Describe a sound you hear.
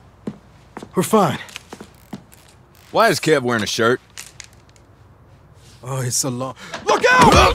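A young man speaks anxiously, then shouts a warning.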